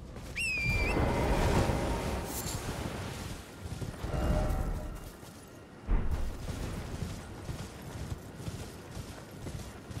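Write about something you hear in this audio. Footsteps run over grass and stone.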